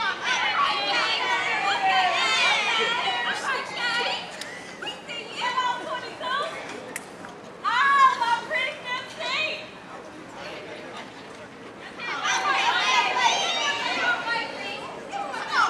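Young women chant loudly together in rhythm outdoors.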